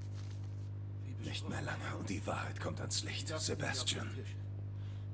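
A newspaper rustles as it is handled.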